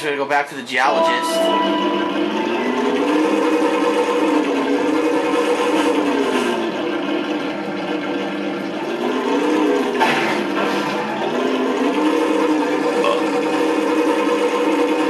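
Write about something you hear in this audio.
A hover vehicle's engine hums steadily, rising and falling in pitch.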